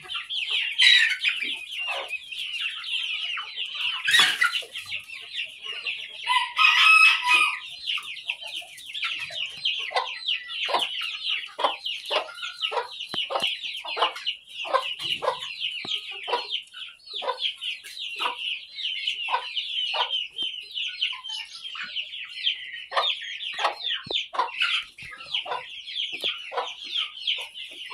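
A hen clucks in short, repeated calls.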